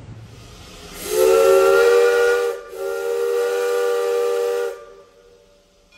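A steam locomotive's whistle blows twice, loud and steady.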